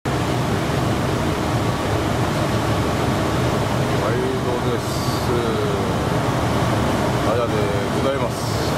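Wind rumbles steadily outdoors over open water.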